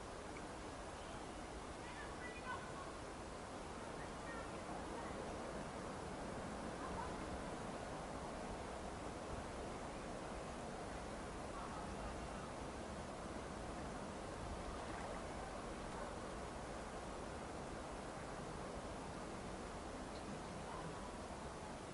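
Wind blows steadily outdoors, rustling through grass.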